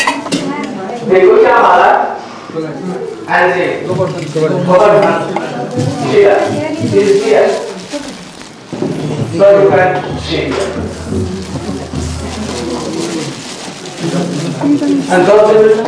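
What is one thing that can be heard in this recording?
An elderly man chants loudly into a microphone.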